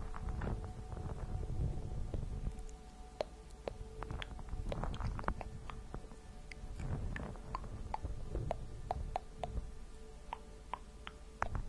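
A young woman whispers softly close to a microphone.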